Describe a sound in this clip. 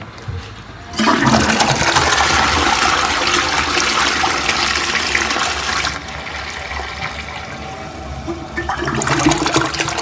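A toilet flushes with loud rushing, gurgling water.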